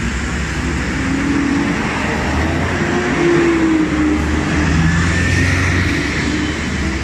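A bus engine rumbles loudly as the bus passes close by.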